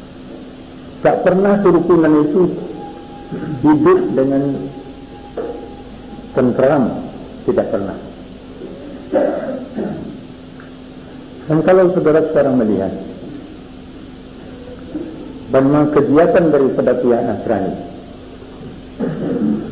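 An elderly man speaks slowly in short phrases through a microphone.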